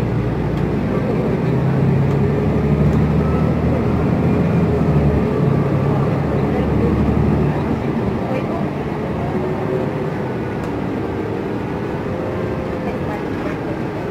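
A bus engine rumbles steadily from inside the bus.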